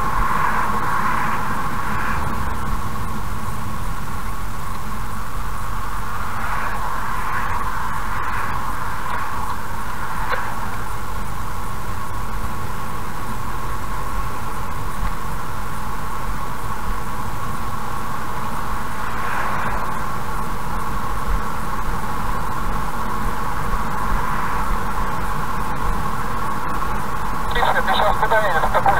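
A car engine hums steadily as tyres roll on the road.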